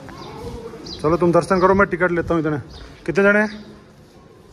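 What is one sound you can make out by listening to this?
Teenage boys and girls talk and call out nearby.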